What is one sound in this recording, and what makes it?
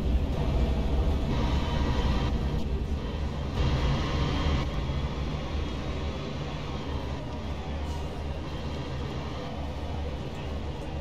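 A bus engine rumbles steadily at low speed.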